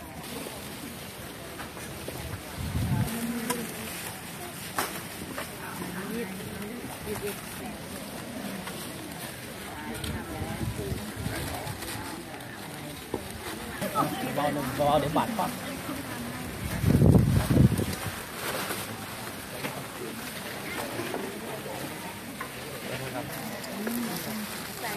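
Men and women talk quietly nearby.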